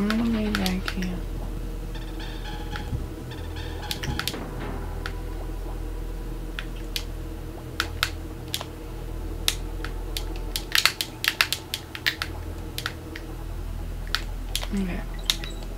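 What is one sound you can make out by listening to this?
Upbeat video game music plays steadily.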